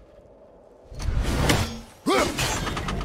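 An axe whooshes as it is thrown hard.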